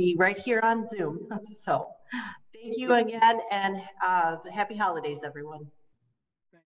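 An older woman speaks calmly and warmly over an online call.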